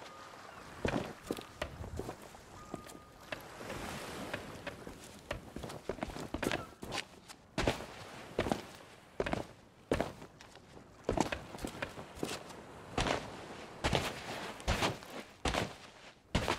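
Footsteps walk steadily over stone and dirt.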